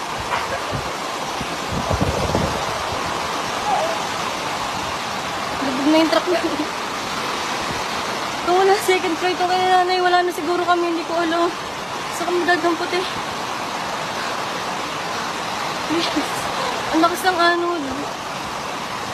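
Muddy floodwater rushes and churns steadily outdoors.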